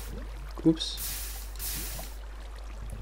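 Lava hisses as water is poured onto it.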